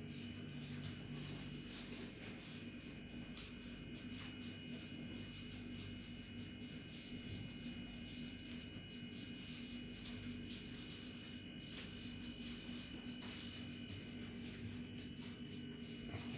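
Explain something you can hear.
Plastic gloves rustle as hands press and spread dry shredded pastry.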